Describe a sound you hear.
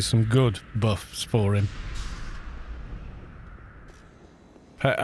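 A magic spell shimmers and whooshes.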